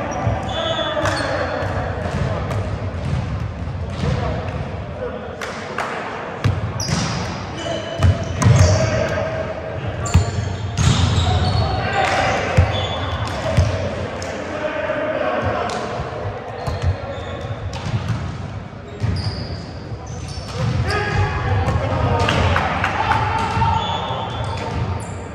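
Sneakers squeak on the wooden floor.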